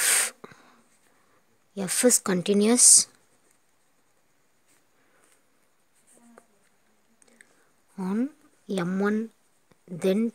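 A pen scratches across paper.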